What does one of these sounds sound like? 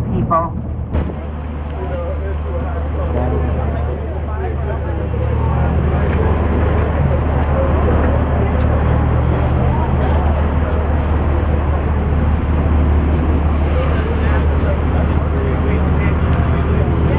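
A group of people chatter outdoors.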